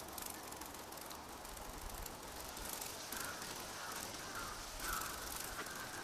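An insect's wings buzz as it flies close by.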